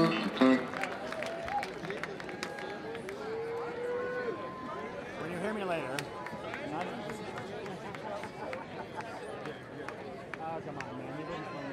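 A band plays live music through a large outdoor sound system.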